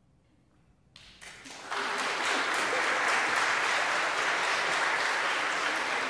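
An audience bursts into loud applause.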